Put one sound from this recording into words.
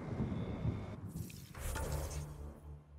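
A menu opens with a whooshing swish.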